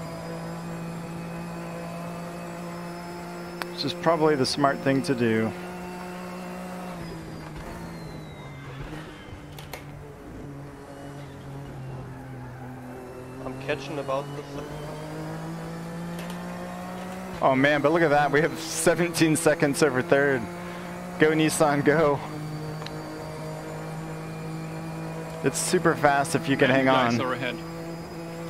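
A racing car engine hums steadily, rising and falling in pitch.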